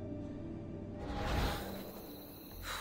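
A soft whoosh swells and fades.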